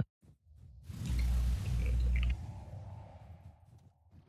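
A burst of fire roars and whooshes.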